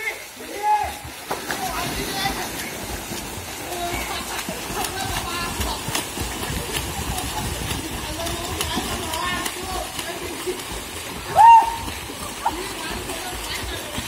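Swimmers splash and churn the water as they race.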